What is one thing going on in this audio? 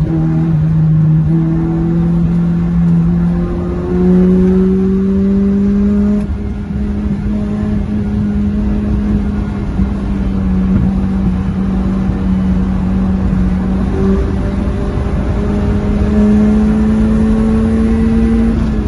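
Wind and tyre noise rush loudly past the car.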